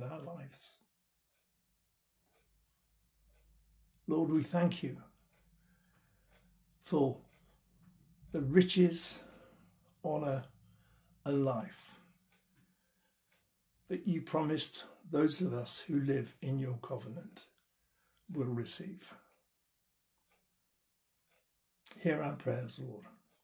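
An elderly man speaks calmly and slowly close to a microphone, with long pauses.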